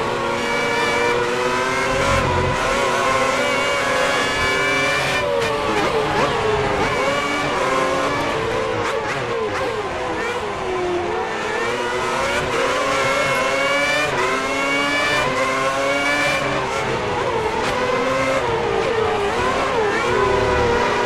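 A racing car engine screams loudly, rising in pitch and dropping sharply with each gear change.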